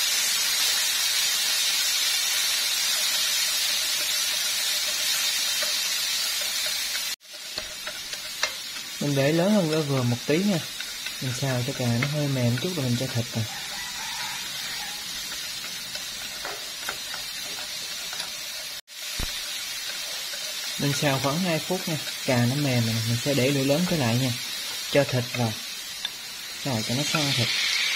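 Chopsticks scrape and tap against a frying pan.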